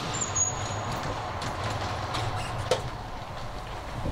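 A door clicks as it is pushed open.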